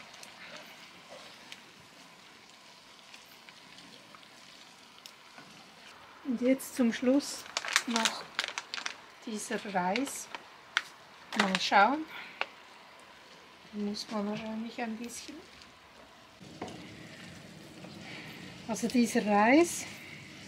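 A wooden spatula scrapes and stirs food in a pan.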